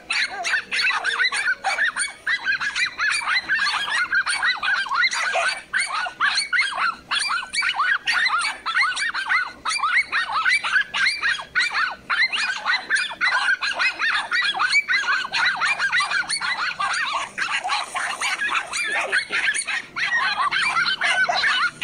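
Several dogs bark and yelp rapidly and excitedly nearby.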